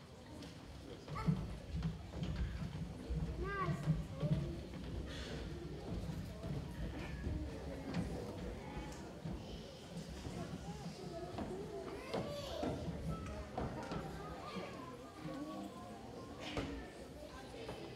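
Young children chatter softly in a hall.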